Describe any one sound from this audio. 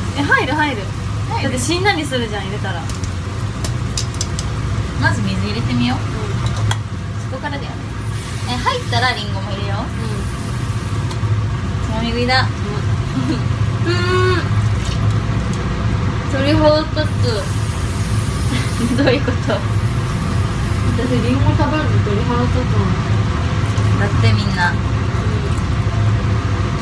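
A young woman talks and laughs close to a microphone.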